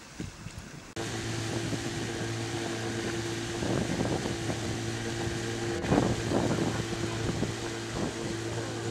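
An outboard motor drones steadily at high speed.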